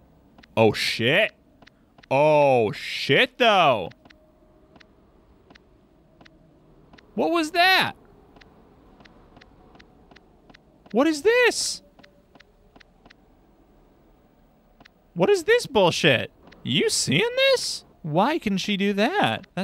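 A young man talks with animation into a microphone, in short bursts.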